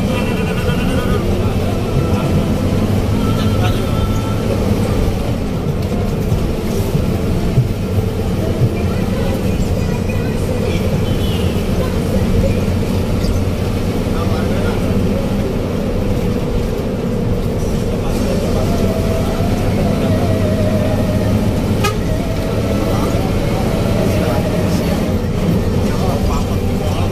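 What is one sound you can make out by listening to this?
A diesel coach bus engine drones as the bus cruises, heard from inside the cab.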